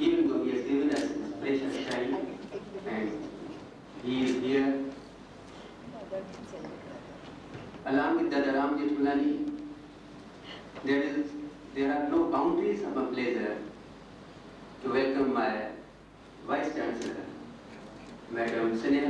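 A woman speaks through a microphone in short bursts with pauses.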